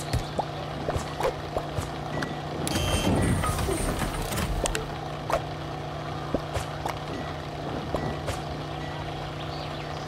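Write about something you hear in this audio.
Short video game sound effects pop and clink now and then.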